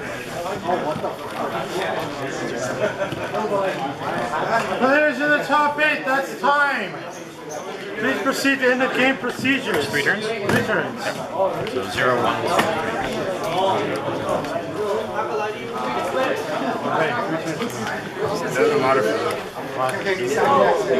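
Young men talk back and forth close by.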